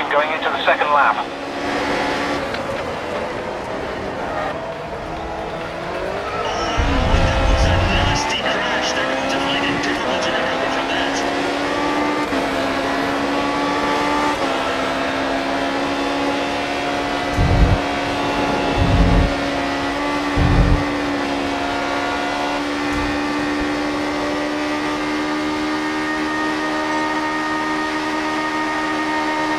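A racing car engine roars, dropping in pitch under braking and rising as it speeds up through the gears.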